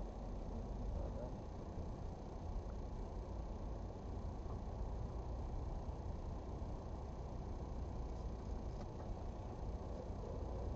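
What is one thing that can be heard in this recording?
Tyres swish through water on a wet road.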